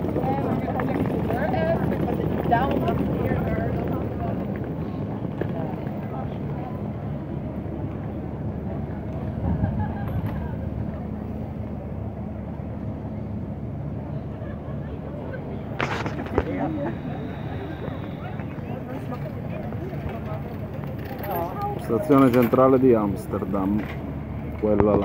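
Adults chatter close by outdoors.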